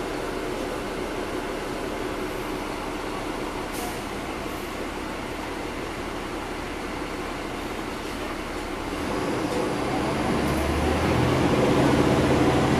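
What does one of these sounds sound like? A bus engine rumbles steadily and grows louder as the bus speeds up.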